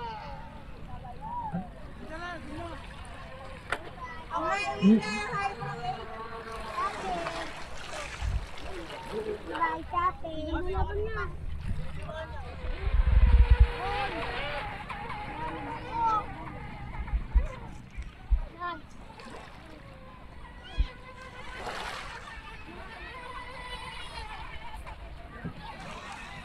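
A small motor boat whines as it speeds across the water.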